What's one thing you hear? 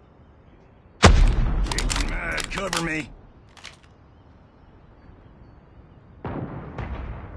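A sniper rifle fires with a loud boom.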